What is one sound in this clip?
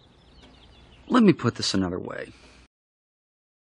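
A man speaks in a relaxed, drawling voice.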